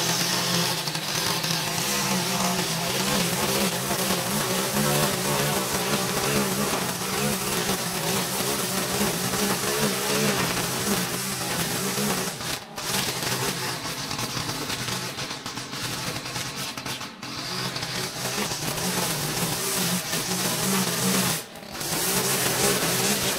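A string trimmer engine buzzes loudly and steadily while cutting grass, with brief drops in pitch.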